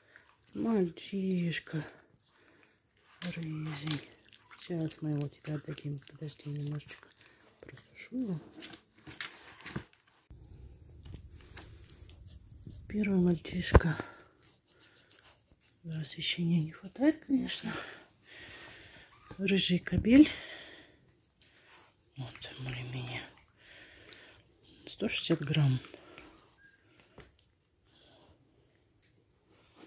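A dog licks a puppy with soft wet sounds.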